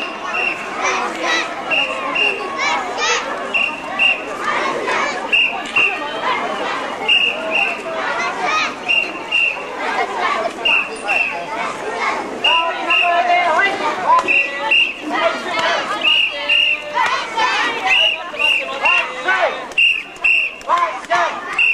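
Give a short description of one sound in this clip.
A crowd of young children chant and shout together outdoors.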